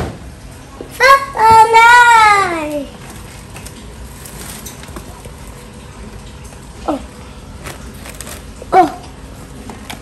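A toddler squeals and babbles in a high voice close by.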